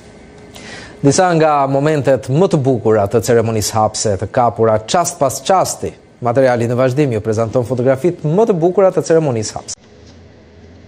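A man speaks calmly and clearly into a microphone, like a news presenter.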